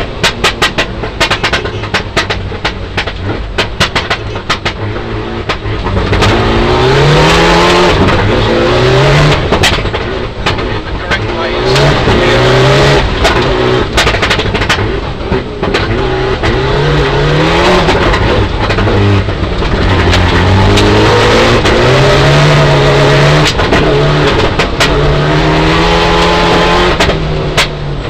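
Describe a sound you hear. Gravel and stones rattle and clatter against the underside of a car.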